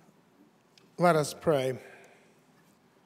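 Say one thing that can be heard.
A man speaks through a microphone.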